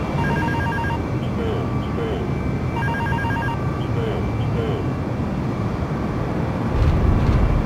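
Jet engines roar steadily as an airliner flies low.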